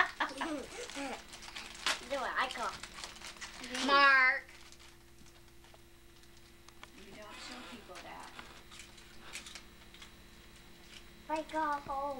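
Plastic toys clatter and rattle on the floor.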